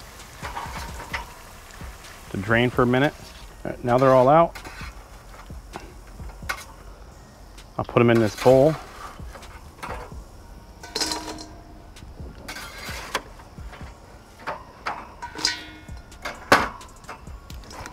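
Fries rustle and clatter onto a wire rack.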